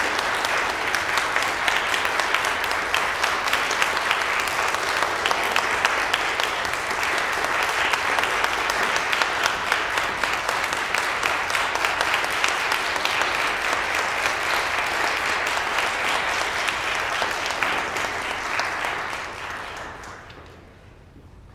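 An audience applauds loudly in an echoing hall, then the applause fades.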